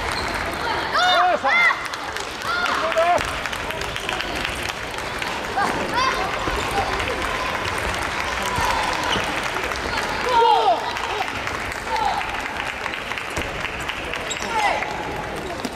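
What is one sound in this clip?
Sports shoes squeak sharply on a wooden floor.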